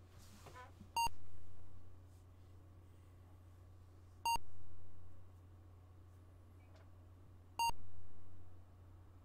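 A computer game gives short electronic tones.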